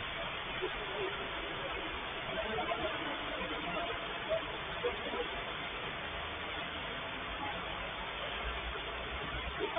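Men call out to each other far off in a large echoing hall.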